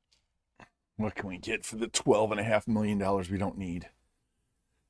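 A man speaks close to a microphone with animation.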